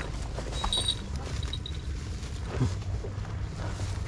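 Grass rustles and swishes as a man walks through it.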